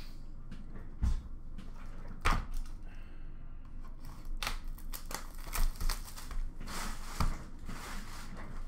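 A hand rummages through plastic toy pieces in a bin, making them clatter and rattle.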